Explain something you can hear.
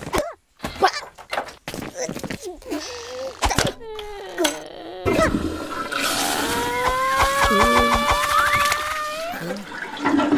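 A heavy wooden door creaks and falls with a thud.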